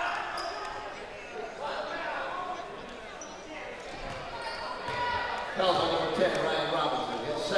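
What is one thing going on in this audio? Spectators and players shout and call out in a large echoing gym.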